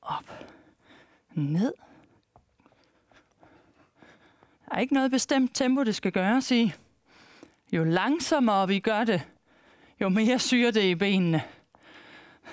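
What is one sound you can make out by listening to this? A woman speaks with energy through a microphone.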